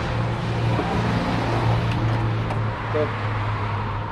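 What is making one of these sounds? A car's pop-up headlights whir open with a small motor.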